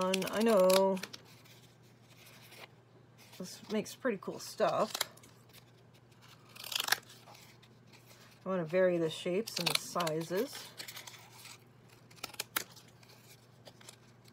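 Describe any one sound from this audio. Scissors snip through corrugated cardboard.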